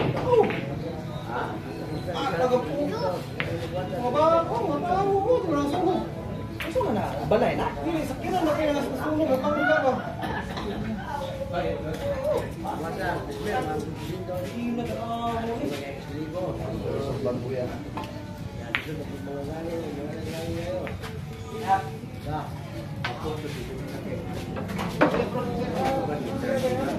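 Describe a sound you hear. Several men talk and chat casually nearby.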